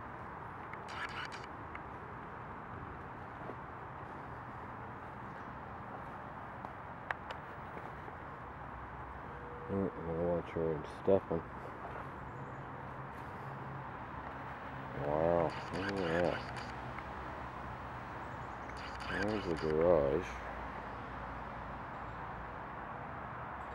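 Wind rustles through the leaves of a fallen tree outdoors.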